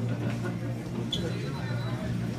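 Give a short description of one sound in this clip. Pool balls clack together on a table.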